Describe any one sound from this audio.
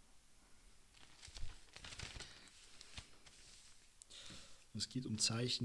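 Newspaper pages rustle and crinkle as they are folded.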